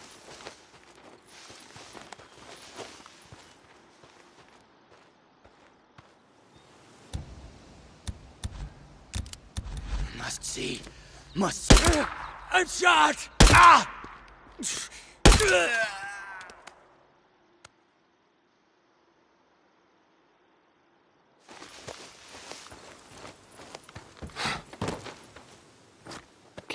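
Footsteps rustle through dry grass and brush.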